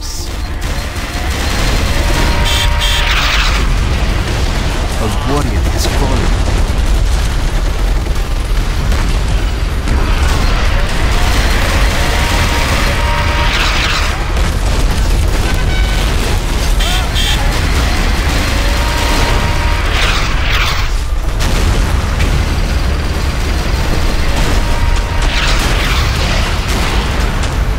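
Aircraft engines roar overhead.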